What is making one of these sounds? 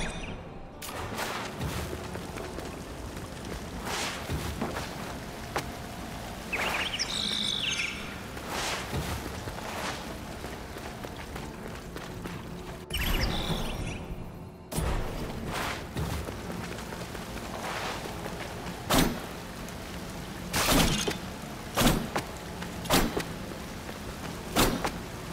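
A sword swishes and clangs.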